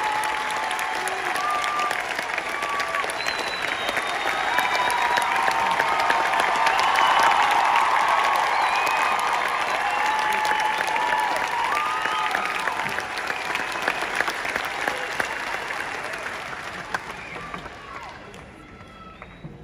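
A large crowd claps loudly in a big echoing hall, then the clapping fades.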